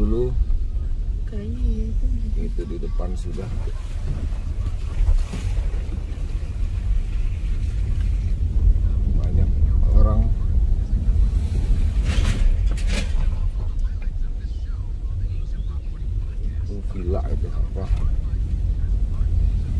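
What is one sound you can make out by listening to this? A car engine rumbles low and steady from inside the car.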